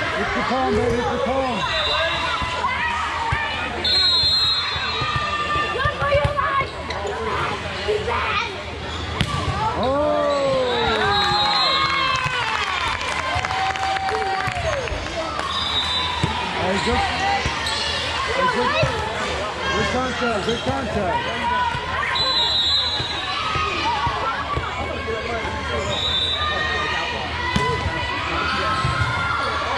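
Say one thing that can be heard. Young girls shout and cheer in a large echoing hall.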